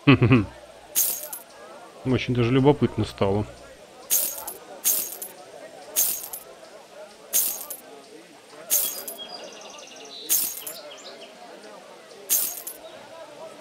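Metal armour pieces clink sharply as they are equipped, one after another.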